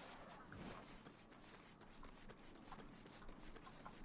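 Footsteps run across wooden boards.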